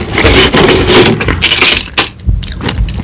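Crispy food crackles close up as it is handled.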